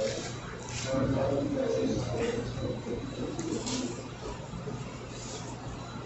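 Paper rustles softly as a hand picks up and puts down a biscuit.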